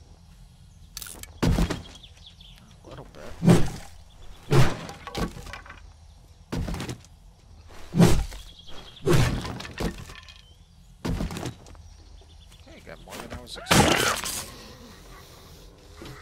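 A man talks into a microphone in short bursts.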